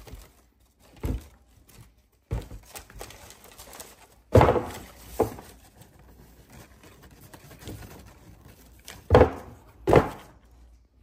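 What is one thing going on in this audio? A shoe bumps and knocks against a cardboard box.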